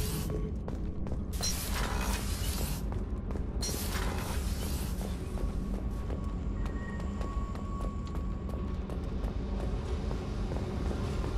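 Footsteps clank quickly on a metal floor.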